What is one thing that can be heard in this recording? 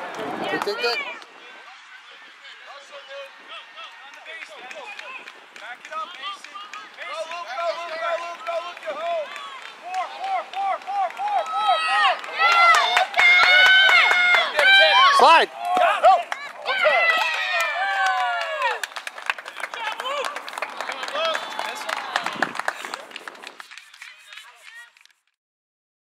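Young boys shout and cheer excitedly outdoors.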